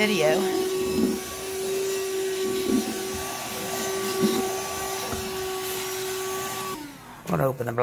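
A handheld vacuum cleaner hums steadily and then switches off.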